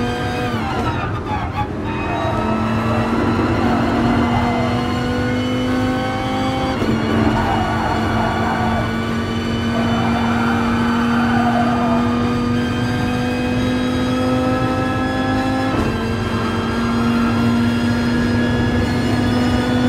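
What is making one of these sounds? A race car engine roars loudly, rising in pitch and dropping at each gear change.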